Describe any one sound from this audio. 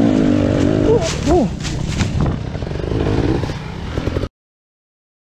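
Dry leaves crunch and rustle under a falling dirt bike.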